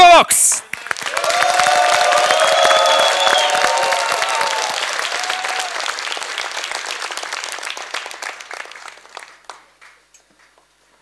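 An audience claps and cheers in a large echoing hall.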